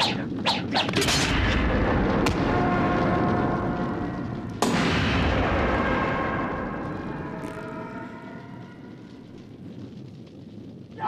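A fire roars loudly, then slowly dies down.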